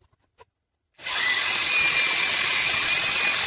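A small rotary tool whirs loudly as it grinds.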